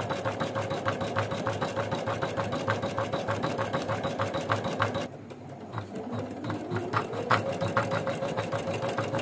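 An embroidery machine stitches with a fast, steady clatter and hum.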